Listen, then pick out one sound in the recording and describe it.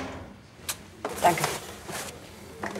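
A woman answers briefly in a calm voice.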